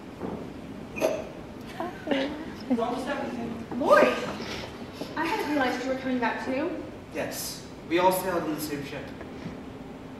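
A young woman speaks with feeling, heard from a distance in a large hall.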